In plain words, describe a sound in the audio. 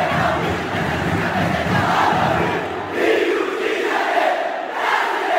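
A large crowd chants loudly in a stadium.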